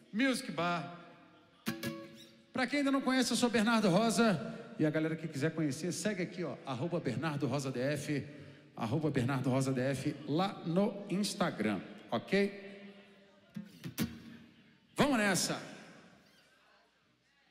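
An acoustic guitar is strummed through an amplifier.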